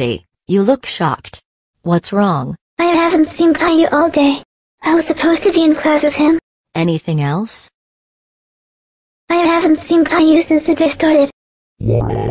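A man speaks in a flat, computer-generated voice.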